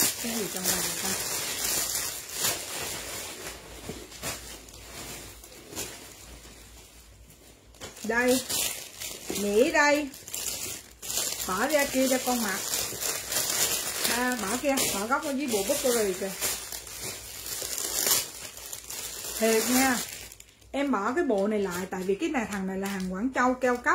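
Clothing fabric rustles as it is handled.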